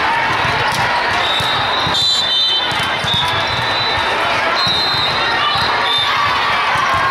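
A crowd chatters and cheers in a large echoing hall.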